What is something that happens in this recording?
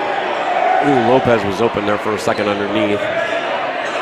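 A man in the crowd shouts loudly.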